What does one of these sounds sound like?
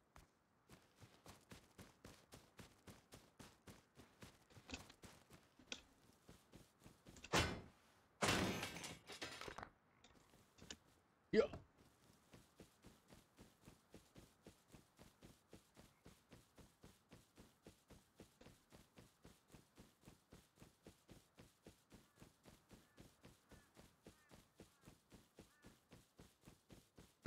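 Quick footsteps thud steadily on grass and dirt.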